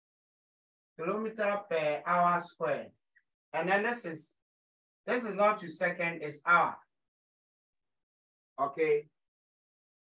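A man speaks in steady bursts, explaining calmly, close to the microphone.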